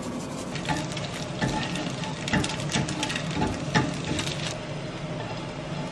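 A metal spatula scrapes and taps against a frying pan.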